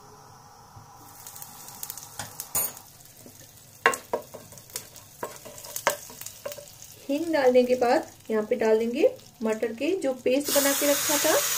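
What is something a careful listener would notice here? Oil sizzles gently in a hot pan.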